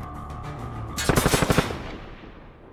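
A burst of rapid gunshots cracks close by.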